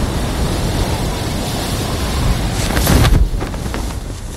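A parachute snaps open with a sharp whoosh.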